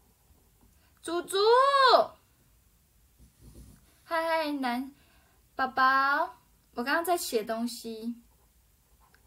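A young woman speaks close to a microphone in short, lively bursts.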